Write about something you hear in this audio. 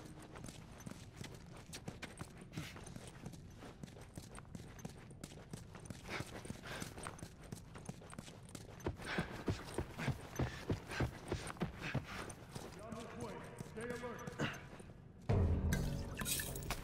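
Footsteps patter quickly on a hard floor as a man runs.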